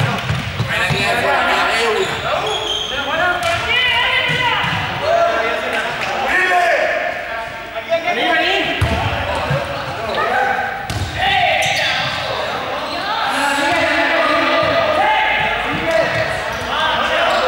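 Many young people talk and call out in a large echoing hall.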